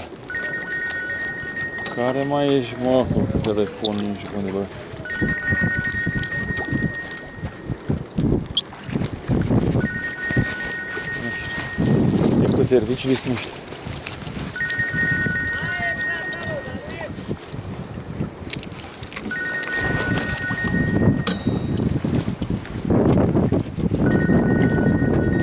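An oar squeaks in its oarlock with each stroke.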